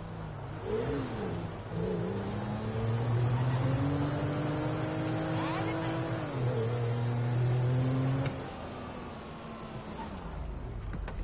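A car engine revs and roars as it speeds up.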